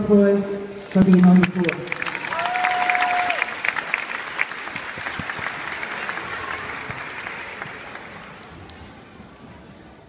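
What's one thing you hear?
A crowd applauds and gradually fades.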